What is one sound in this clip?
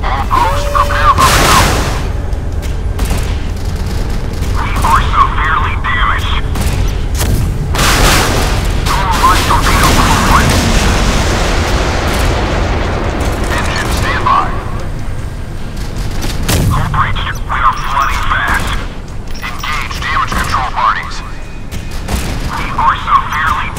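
Naval guns fire in rapid bursts.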